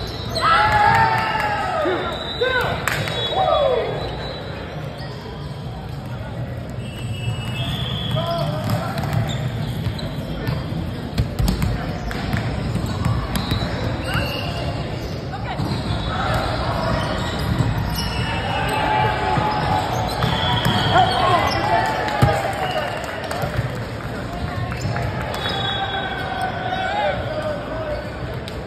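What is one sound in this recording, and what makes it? Players shout and call out to each other in a large echoing gym.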